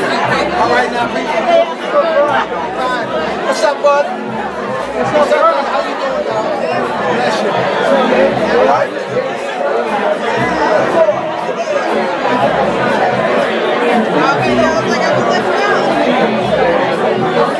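A crowd of men and women chatter and greet each other all around in a large room.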